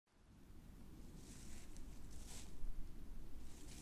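Boots tread through grass and rustle the undergrowth.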